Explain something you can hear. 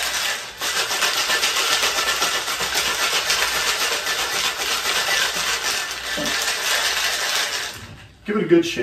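Ice rattles hard in a cocktail shaker being shaken fast.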